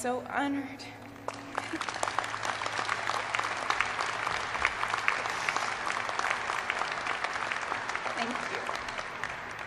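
A woman speaks briefly into a microphone over loudspeakers.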